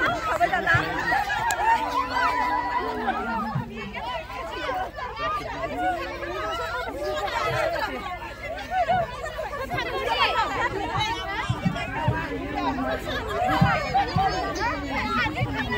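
A crowd of women chatter and call out close by, outdoors.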